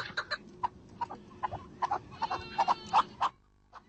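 Partridges call with sharp, repeated chuckling notes.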